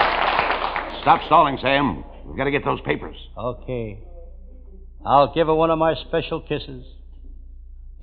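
A man speaks with animation, heard through an old, muffled radio broadcast.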